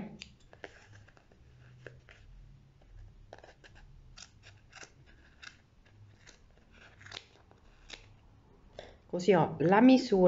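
Scissors snip through yarn.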